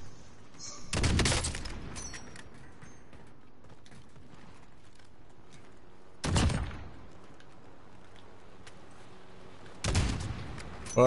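A rifle fires loud single shots.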